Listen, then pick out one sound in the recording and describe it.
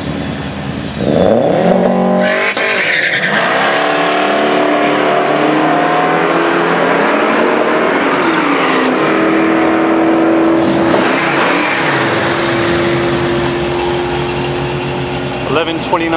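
A car engine roars loudly, climbing in pitch through its gears as the car speeds away.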